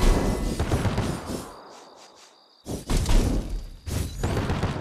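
A magical power-up effect bursts with loud whooshing and rumbling.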